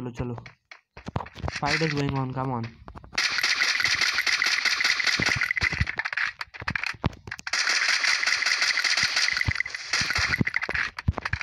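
Rifle shots crack in short bursts.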